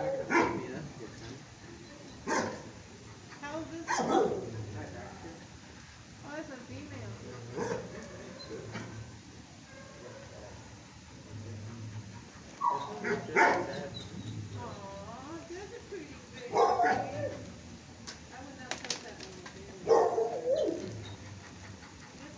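A dog's claws click and patter on a hard floor.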